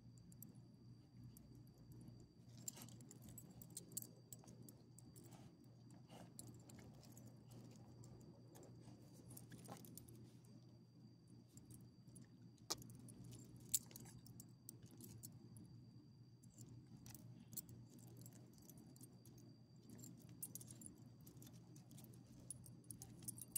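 Dog tags jingle and clink softly close by.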